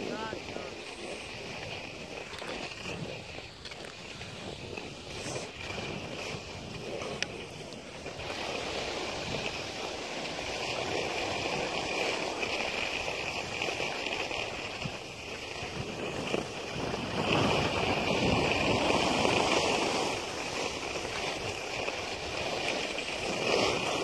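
Wind rushes past a moving skier.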